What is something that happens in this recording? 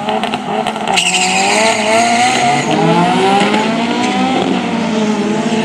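A race car roars away, its engine rising in pitch as it speeds off.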